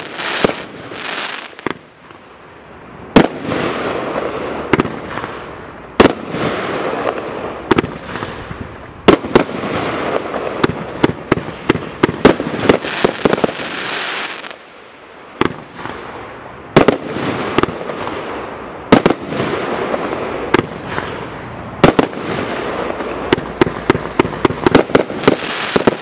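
A firework cake fires shells with sharp bangs.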